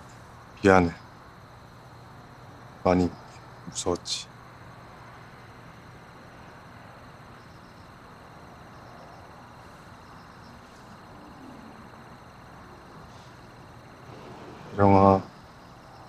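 A young man speaks a few short, strained words close by.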